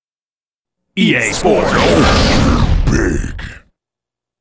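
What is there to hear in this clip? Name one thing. A loud, rushing burst of intro music plays for a few seconds and then stops.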